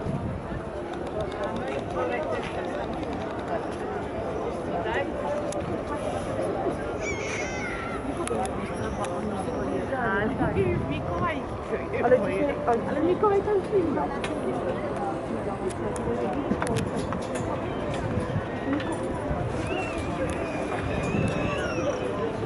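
A crowd of men and women chatters outdoors in the open.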